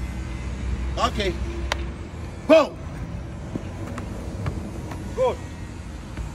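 A football thumps off a man's body as he juggles it.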